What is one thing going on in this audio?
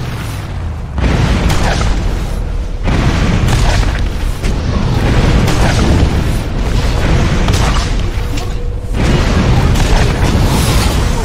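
Explosions boom loudly nearby, one after another.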